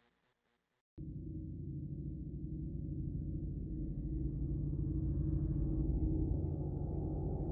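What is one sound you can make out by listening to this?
A cat purrs loudly up close.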